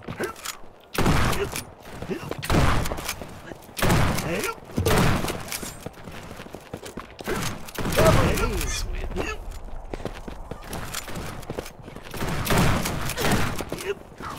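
Shotgun blasts ring out in quick bursts.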